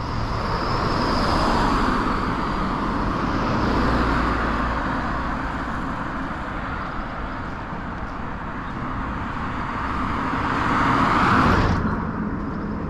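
Cars drive past on a nearby road with a rushing whoosh.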